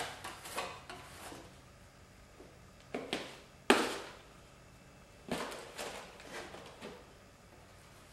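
A pad scrubs and scrapes against a metal plate in short strokes.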